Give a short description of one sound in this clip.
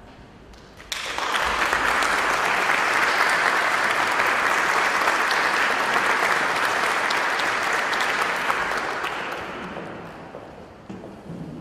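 An audience applauds steadily, then the clapping fades away.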